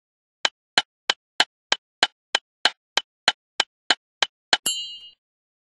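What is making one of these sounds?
A pickaxe strikes stone in quick, evenly spaced blows.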